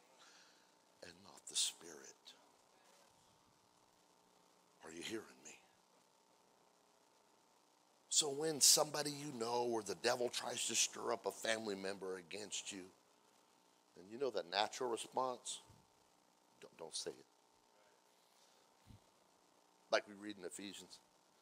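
A middle-aged man speaks with animation into a microphone, with pauses.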